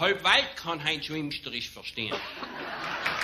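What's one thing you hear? A man reads aloud into a microphone in a lively voice.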